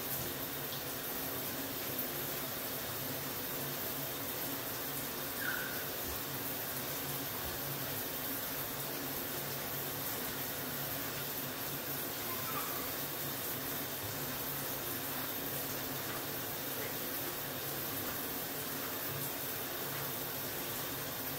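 Water splashes softly in a bathtub.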